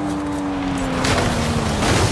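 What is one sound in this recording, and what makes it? Leaves and bushes crash against a car.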